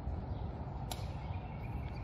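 A croquet mallet knocks a ball with a sharp wooden crack.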